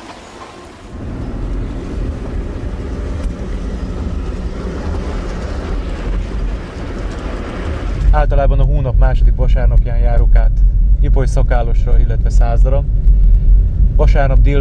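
A car drives along with a steady low rumble inside.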